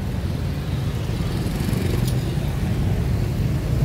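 A car drives past.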